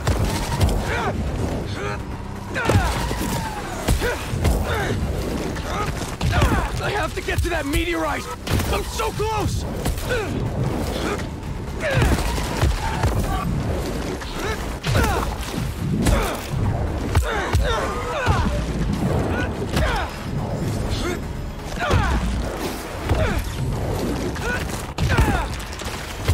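Heavy blows thud and crash in a fight.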